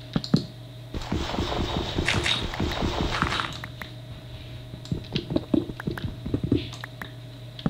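Dirt and stone crunch in quick taps as blocks are dug away.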